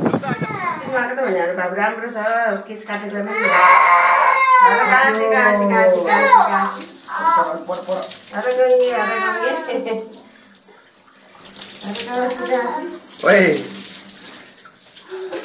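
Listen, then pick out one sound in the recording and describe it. A young boy cries loudly close by.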